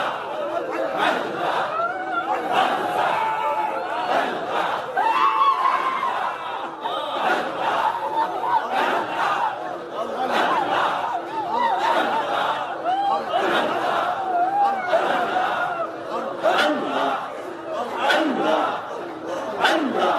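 A man preaches loudly and passionately into a microphone, heard through loudspeakers.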